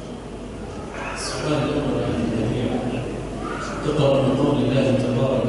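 A boy chants in a melodic voice into a close microphone.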